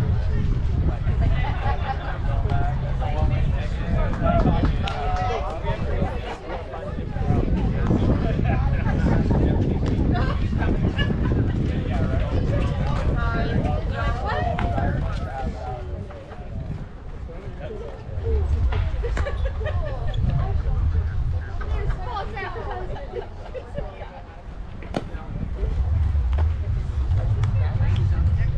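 Wind blows across an open outdoor field.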